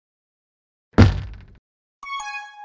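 A game weapon fires with a loud bang.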